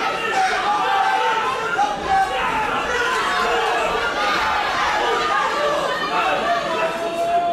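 Punches thud against bodies.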